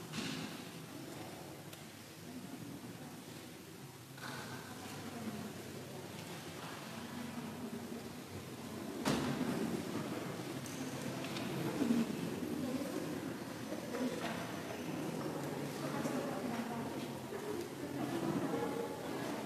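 A man speaks calmly and close by, in a large echoing hall.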